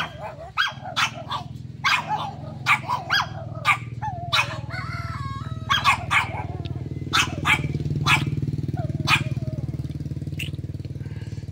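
A bird chirps in short, sharp calls close by.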